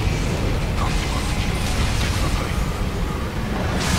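A sword clashes and strikes in combat.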